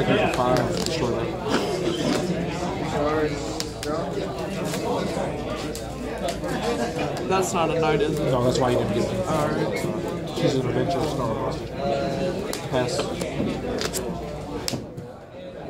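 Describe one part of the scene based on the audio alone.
Playing cards are slid and tapped onto a soft table mat.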